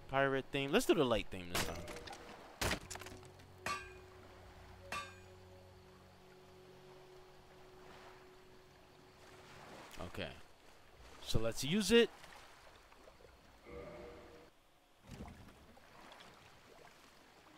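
Water laps gently against a wooden boat.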